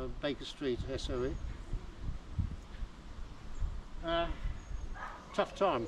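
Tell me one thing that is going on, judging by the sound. An elderly man speaks outdoors nearby.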